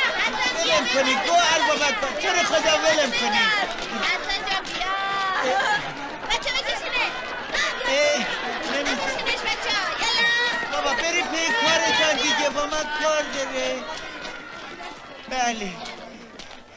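A group of children shout and chatter excitedly close by.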